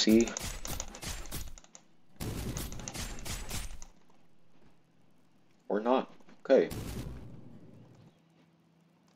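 Rapid game punches and fiery blasts thud and crackle in quick bursts.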